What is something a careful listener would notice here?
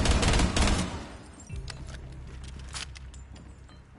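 A gun is reloaded with metallic clicks.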